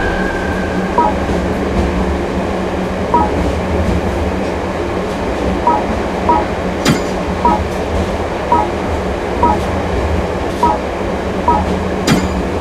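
Short electronic blips sound as a menu selection moves.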